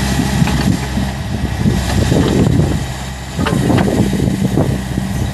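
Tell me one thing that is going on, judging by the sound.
A small excavator's diesel engine rumbles steadily close by.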